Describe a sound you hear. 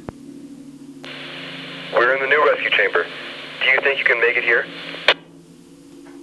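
A voice crackles over a two-way radio.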